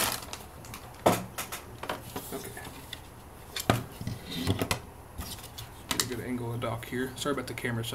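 A plastic holder clicks and knocks against a desk.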